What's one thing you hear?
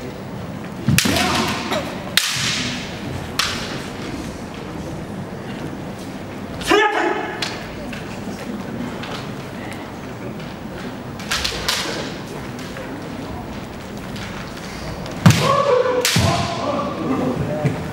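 Fencers shout loudly as they strike.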